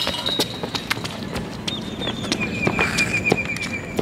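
Sneakers slap on pavement as a boy runs.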